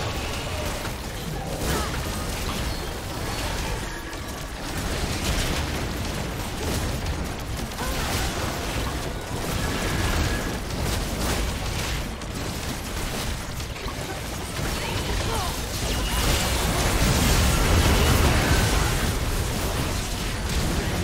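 Spell blasts and hits crackle and boom in a busy fight.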